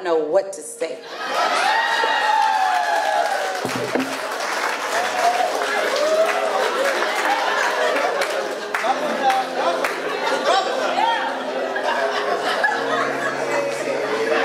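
A crowd of guests cheers and chatters loudly.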